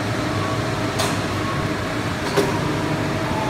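A metal part clanks against metal.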